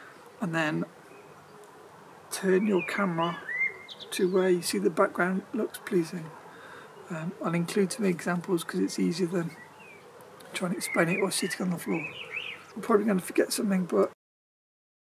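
A man talks calmly and close by, explaining.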